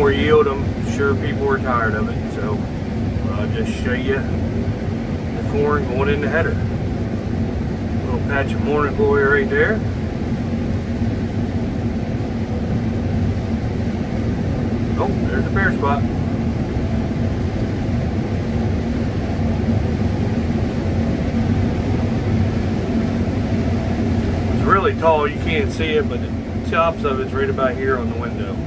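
A combine harvester engine rumbles steadily.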